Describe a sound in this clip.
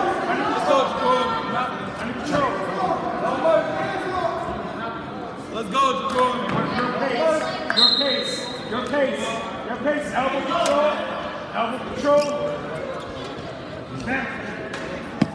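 A crowd of young spectators shouts and cheers in a large echoing hall.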